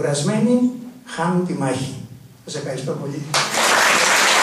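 An elderly man speaks through a microphone.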